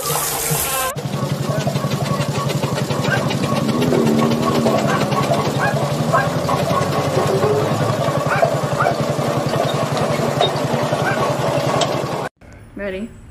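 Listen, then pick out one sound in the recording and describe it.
A road roller engine rumbles and chugs steadily.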